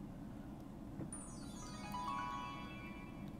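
A handheld game console plays a bright tinkling chime through its small speaker.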